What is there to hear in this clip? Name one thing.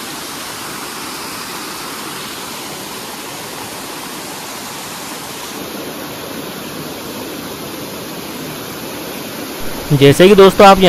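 A waterfall splashes and rushes steadily over rocks.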